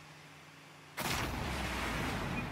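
A loud explosion bursts as a ball hits a goal.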